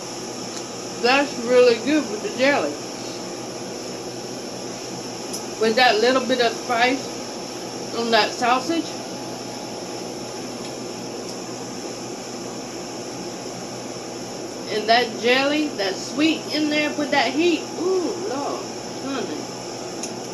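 An older woman talks calmly and close by, in short bursts.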